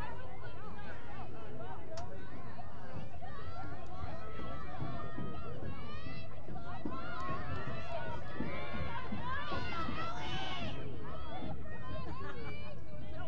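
Young women shout and call to each other outdoors.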